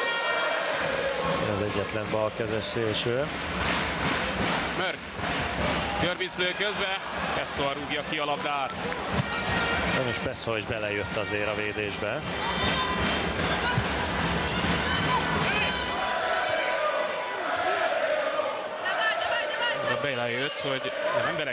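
A large crowd chants and cheers loudly in an echoing hall.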